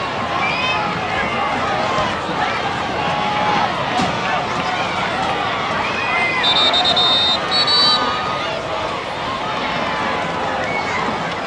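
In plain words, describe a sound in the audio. A large crowd of spectators cheers and chatters loudly outdoors.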